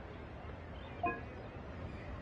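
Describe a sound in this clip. A short, bright game chime sounds once.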